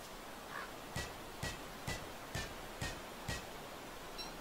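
A pickaxe strikes rock in quick, repeated blows.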